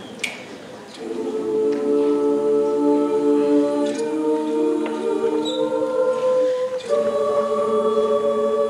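A group of young women sings together on stage.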